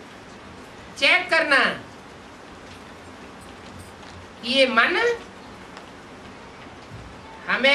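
An elderly man speaks calmly in short phrases close to a clip-on microphone.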